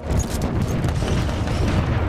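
Explosions boom with a deep rumble.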